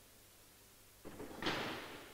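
A cue strikes a billiard ball.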